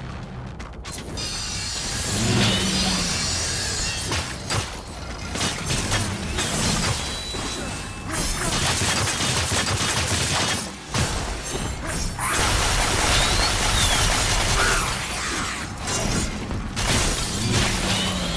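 Swords clash and slash with sharp metallic hits.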